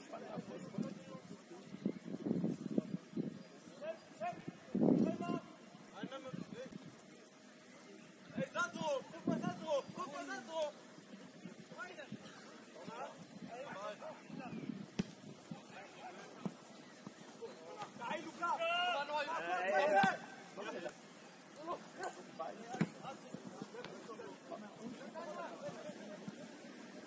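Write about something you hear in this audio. Young men shout and call to each other from a distance outdoors.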